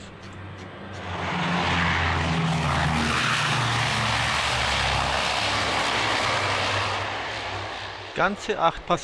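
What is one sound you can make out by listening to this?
A propeller plane roars loudly as it flies low overhead and fades away.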